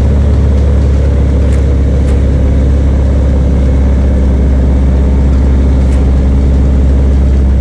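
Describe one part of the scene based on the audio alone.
A diesel truck engine rumbles loudly and steadily.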